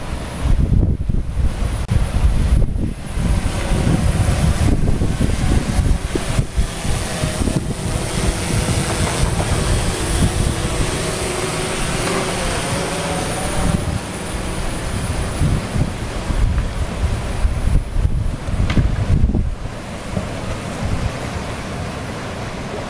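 Whitewater rushes loudly over rocks.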